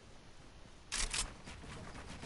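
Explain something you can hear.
A gunshot cracks nearby.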